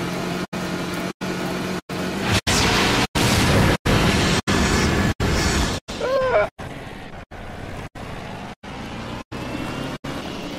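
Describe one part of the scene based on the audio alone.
A quad bike engine hums and revs.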